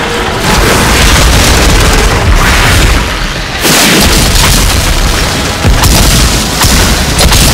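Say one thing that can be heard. Gunshots fire rapidly and loudly.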